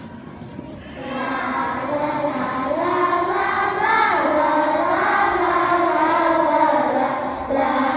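A choir of young children sings together, loud and close, in an echoing hall.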